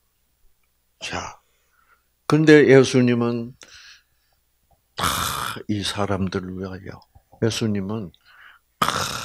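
An elderly man speaks with animation into a microphone, in pauses.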